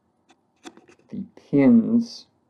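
A small plastic plug clicks softly between fingers.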